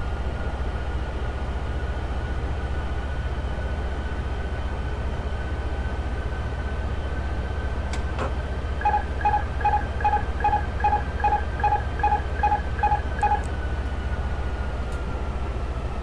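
Jet engines drone steadily.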